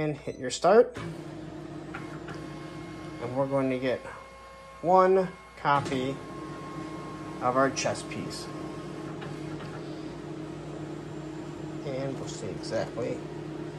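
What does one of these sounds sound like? A printer starts up and hums steadily.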